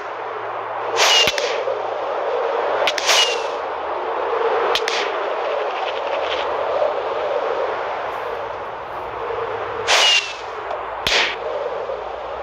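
A firework rocket launches with a whoosh.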